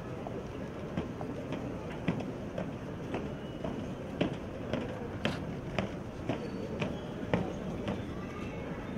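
Boots stamp in step on stone paving outdoors.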